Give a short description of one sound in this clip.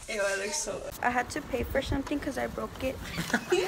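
A young woman speaks animatedly, close by.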